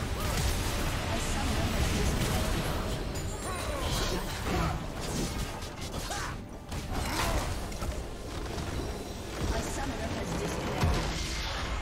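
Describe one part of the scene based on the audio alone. Video game spells and attacks crackle and burst in a busy battle.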